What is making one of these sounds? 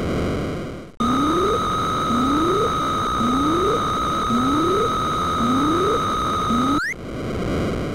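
A steady high electronic whine sounds.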